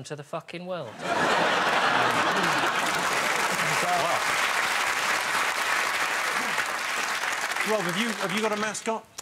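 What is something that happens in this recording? A studio audience laughs and applauds loudly.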